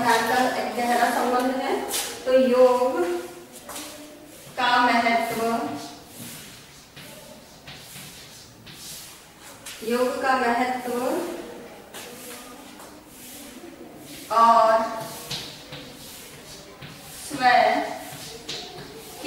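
A woman speaks calmly and clearly, as if teaching, close by.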